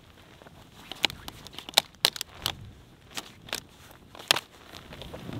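Dry wood snaps and cracks.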